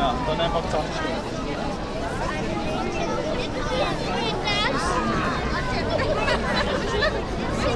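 A large crowd of adults and children chatters outdoors.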